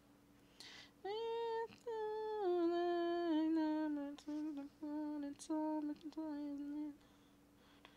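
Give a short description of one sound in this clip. A woman sings softly into a microphone.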